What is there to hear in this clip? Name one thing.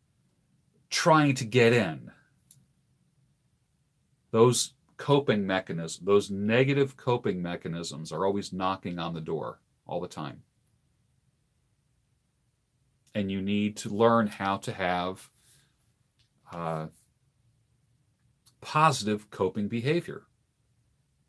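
An older man talks calmly and close by, heard through a microphone, with pauses.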